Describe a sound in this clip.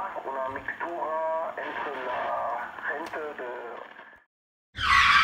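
A man's voice crackles through a two-way radio speaker.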